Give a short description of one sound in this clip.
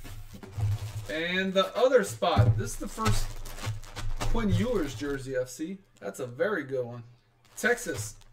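A plastic bag crinkles and rustles as hands open it.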